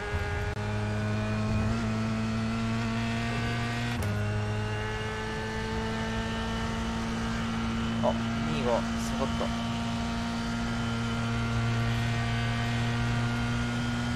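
A racing car engine hums steadily at high revs, shifting pitch with gear changes.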